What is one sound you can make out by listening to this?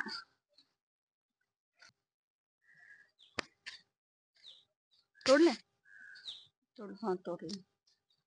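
Leaves rustle as hands pull at a vine.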